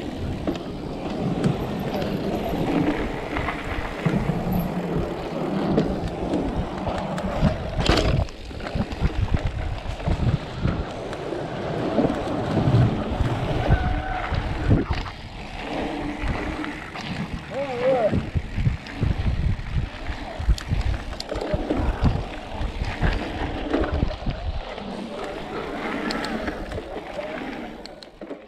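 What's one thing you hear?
Bicycle tyres rumble and crunch over a bumpy dirt trail.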